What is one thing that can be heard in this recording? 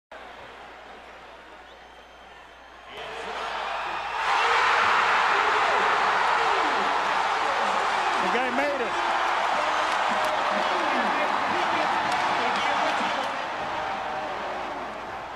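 A large arena crowd murmurs, then erupts into loud roaring cheers.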